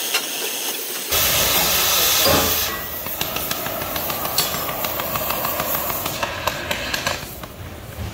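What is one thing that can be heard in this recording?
A gas cutting torch roars and hisses as it cuts through steel.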